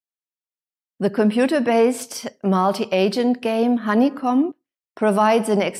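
A middle-aged woman speaks calmly and clearly, close to a microphone.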